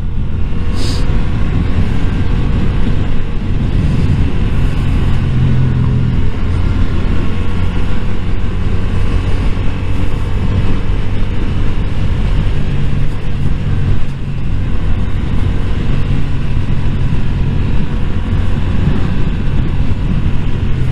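A motorcycle engine hums steadily close by, rising and falling in pitch.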